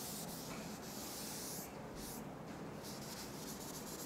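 A duster rubs across a blackboard.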